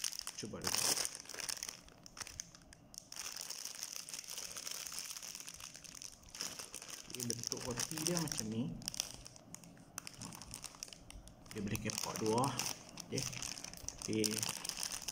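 A plastic wrapper crinkles and rustles close up.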